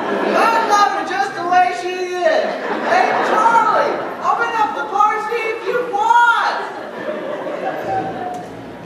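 Several young voices sing together in a large hall.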